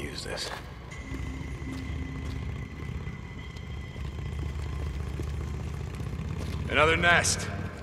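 Footsteps run on hard pavement.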